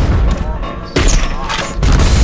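A grenade explodes with a loud blast.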